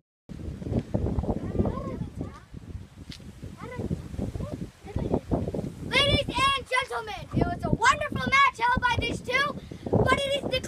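A boy talks with animation close by.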